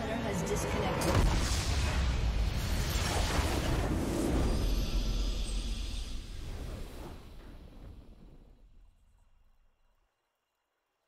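A triumphant game fanfare swells loudly and then fades to silence.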